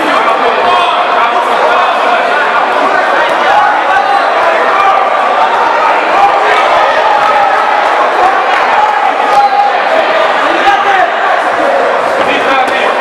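A crowd of spectators shouts and cheers in an echoing indoor hall.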